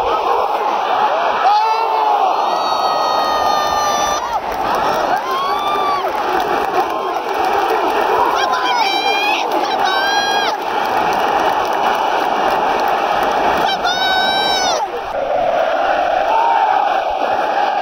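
A large stadium crowd chants and sings loudly throughout.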